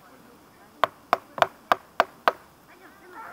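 A mallet strikes a wood chisel, cutting into a log.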